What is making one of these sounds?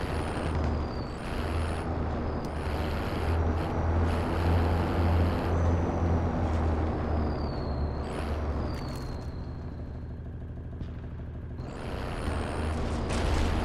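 A diesel military cargo truck drives along a road, its engine rumbling.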